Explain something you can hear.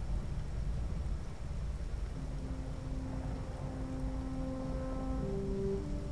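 A large fire crackles and roars.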